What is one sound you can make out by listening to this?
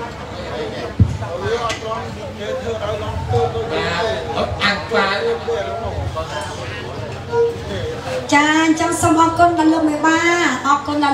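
Many people talk over one another nearby.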